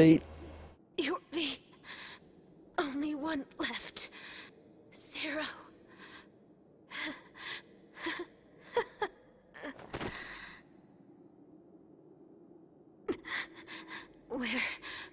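A young woman speaks weakly, in slow halting words.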